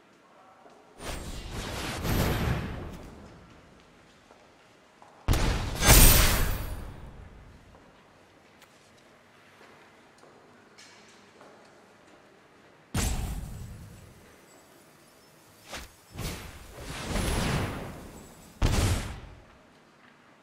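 Magical card game sound effects whoosh and swell in short bursts.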